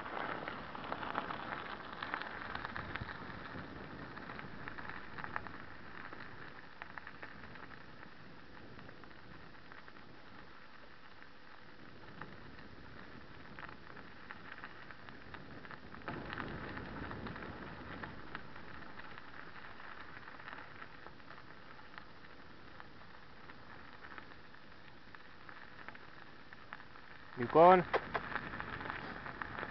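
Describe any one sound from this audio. Bicycle tyres roll and crunch over a gravel track.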